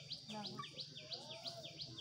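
A young child talks nearby.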